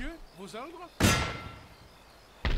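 A cannon blast booms and rumbles away.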